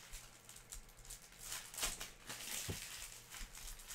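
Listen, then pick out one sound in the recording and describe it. Plastic wrappers crinkle and rustle as hands tear open card packs.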